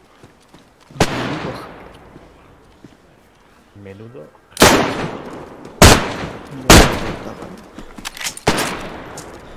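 Rifle shots crack loudly and echo away.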